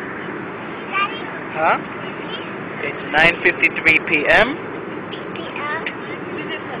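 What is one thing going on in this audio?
A young child squeals and babbles close by.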